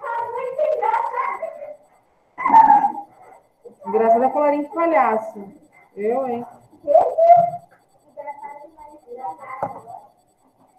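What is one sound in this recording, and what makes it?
A woman speaks calmly through a microphone, close by.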